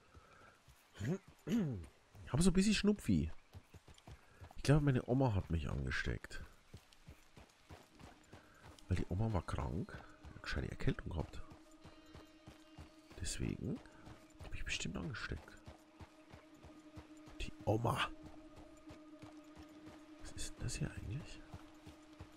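A man talks animatedly into a close microphone.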